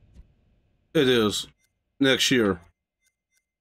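A man speaks briefly and calmly into a nearby microphone.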